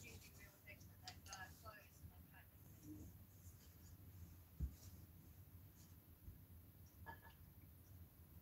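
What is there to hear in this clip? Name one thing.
A woman speaks quietly and calmly close by.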